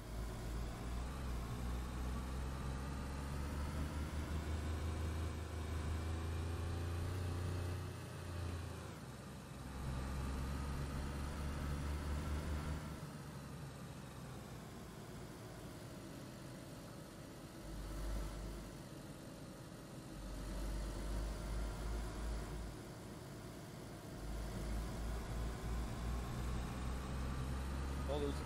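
A car engine hums and revs as the car speeds up and slows down.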